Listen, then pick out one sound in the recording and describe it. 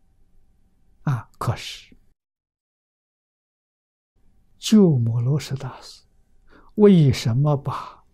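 An elderly man speaks calmly and slowly into a microphone, with long pauses.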